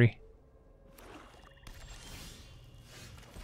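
A soft whoosh sounds.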